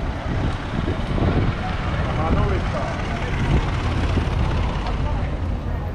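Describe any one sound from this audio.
A small delivery van drives past close by.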